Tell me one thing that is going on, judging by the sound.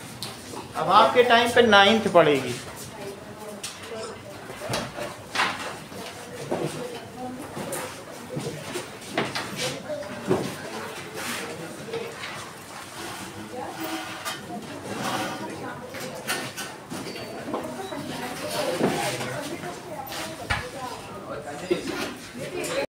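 A middle-aged man lectures calmly, close by.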